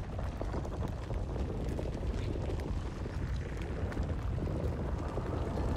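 Light footsteps crunch softly on gritty ground.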